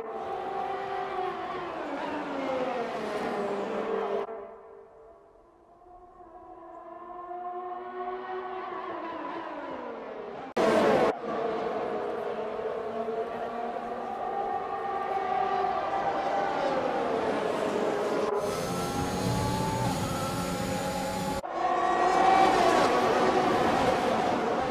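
Racing car engines scream at high revs, rising and falling as the cars shift gears and pass by.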